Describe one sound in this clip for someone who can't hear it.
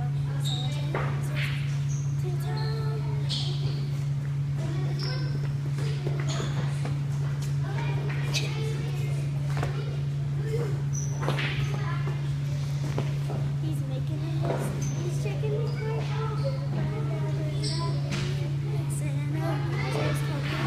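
Feet thump on a hard floor as children jump and hop.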